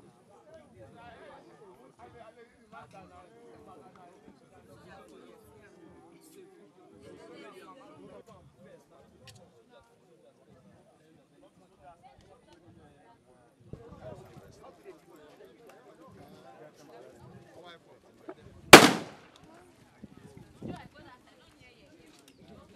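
Several men talk among themselves outdoors.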